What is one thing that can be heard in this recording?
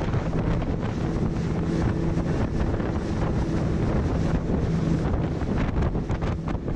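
Waves slap and splash against a speeding boat's hull.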